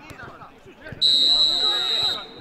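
A referee's whistle blows loud and long.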